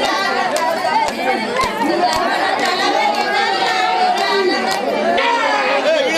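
A group of women sing together close by.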